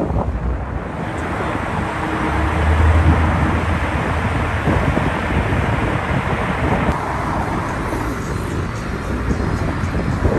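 Car traffic rumbles steadily along a busy street.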